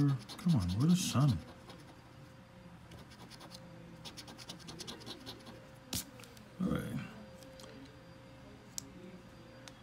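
A coin scrapes across a scratch card.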